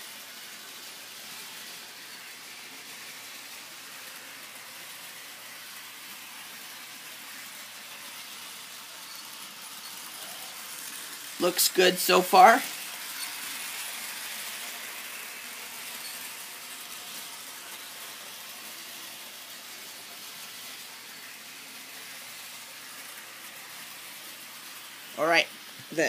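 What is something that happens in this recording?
A small toy train whirs and clicks steadily along its plastic track.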